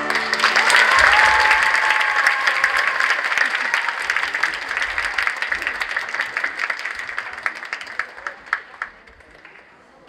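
An audience applauds loudly in a large echoing hall, then the clapping dies away.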